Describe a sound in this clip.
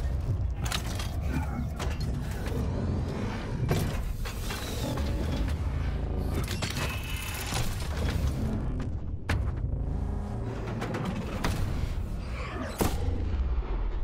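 A giant robot stomps with heavy, clanking metal footsteps.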